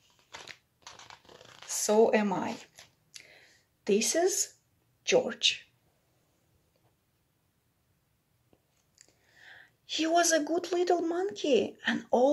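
A woman reads a story aloud close by, with animation.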